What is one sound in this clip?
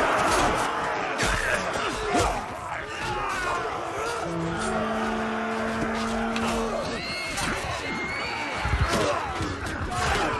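Weapons clash and clatter in a battle.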